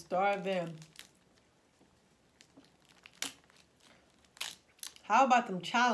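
Crab shells crack and snap.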